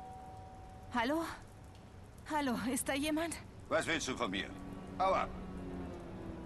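A woman speaks briefly.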